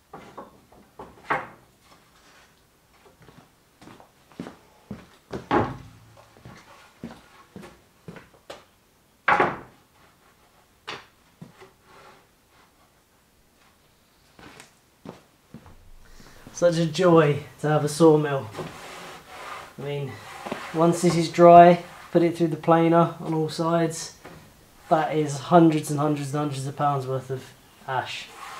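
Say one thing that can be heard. Wooden boards knock and clatter as they are shifted on a shelf.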